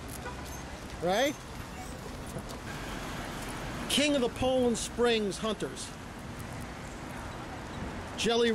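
A dog howls and yowls in short bursts.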